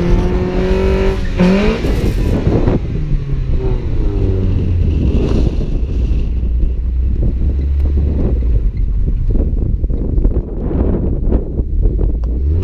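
Tyres crunch and skid on a dirt road.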